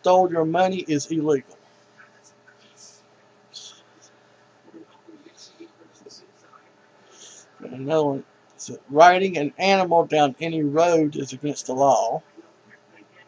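A middle-aged man speaks into a headset microphone, close and with animation.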